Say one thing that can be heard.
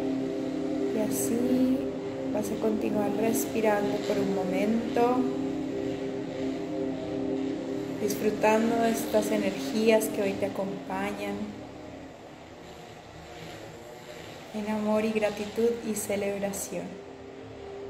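A young woman speaks softly and calmly, close to the microphone.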